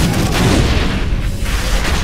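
A crate bursts apart with a loud crash.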